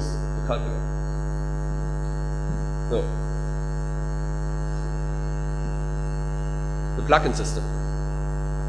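A man speaks briefly into a microphone, with long pauses.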